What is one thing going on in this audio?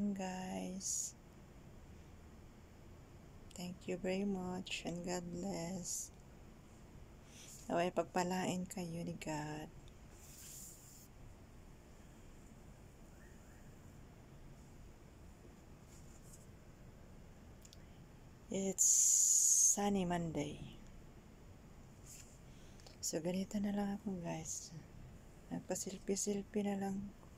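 A woman talks close to a microphone, calmly and in short bursts.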